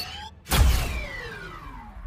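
A blast bursts with a sharp crack.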